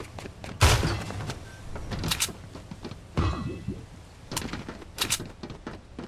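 Footsteps clank and thud on a metal frame during a climb.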